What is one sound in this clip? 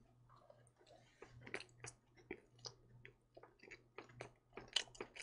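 A young man chews food with soft, wet crunching sounds close to a microphone.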